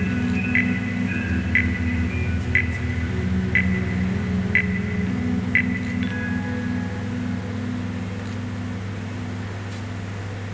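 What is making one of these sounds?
Music with a steady ticking beat plays through loudspeakers outdoors.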